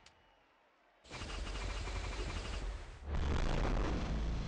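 A bright magical burst whooshes and crackles.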